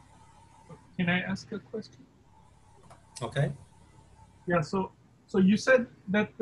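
A second man speaks in short bursts through an online call.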